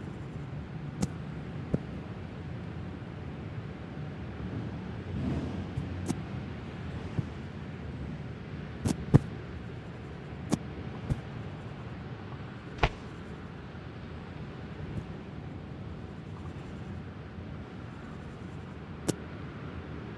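A game character's hands thud softly as it grabs and climbs a wall.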